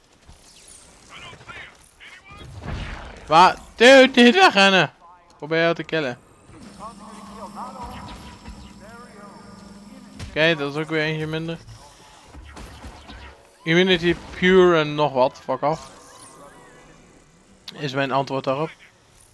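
Energy blasts crackle and whoosh.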